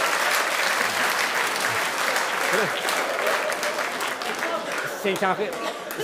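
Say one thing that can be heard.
An audience laughs and applauds loudly in a large hall.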